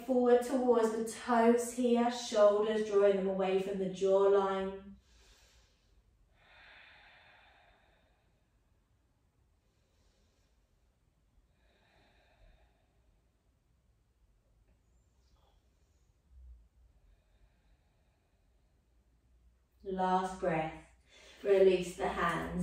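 A young woman speaks calmly, giving instructions close to a microphone.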